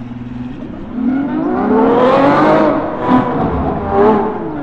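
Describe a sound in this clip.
A sports car engine roars loudly as it accelerates hard.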